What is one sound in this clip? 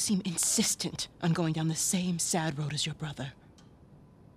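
A woman speaks slowly in a low voice close by.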